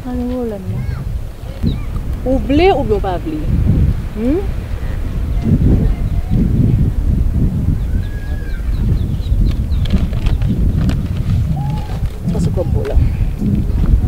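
A woman speaks with animation close by, outdoors.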